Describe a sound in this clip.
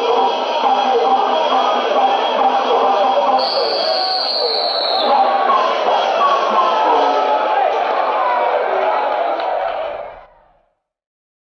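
A large crowd shouts and cheers loudly.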